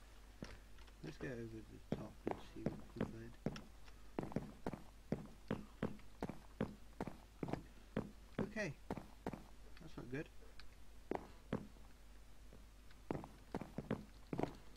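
Footsteps tap quickly across wooden boards.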